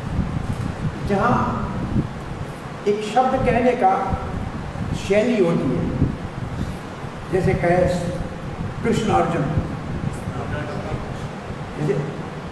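An elderly man speaks slowly and earnestly into a microphone, heard through a loudspeaker.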